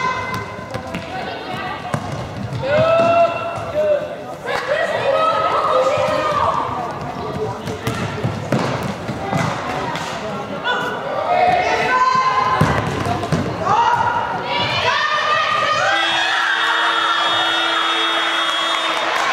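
Young women shout to each other across a large echoing hall.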